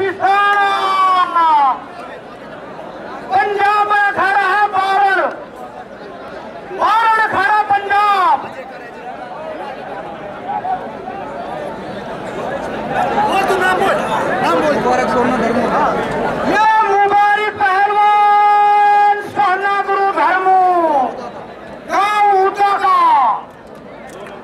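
An elderly man calls out loudly in long drawn-out phrases through a loudspeaker.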